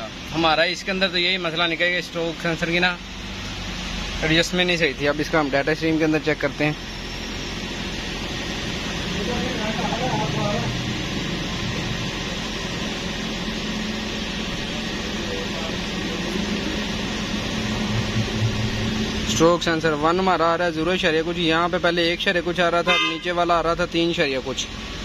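A car engine idles with a low steady hum.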